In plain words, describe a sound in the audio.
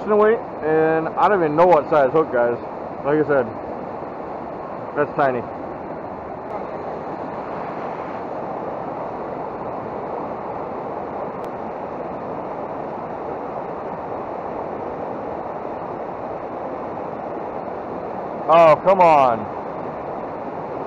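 Rushing water roars steadily over rapids.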